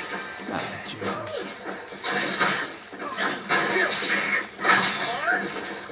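Blows and clashes of a fight ring out.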